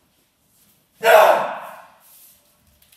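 A man shouts sharply once.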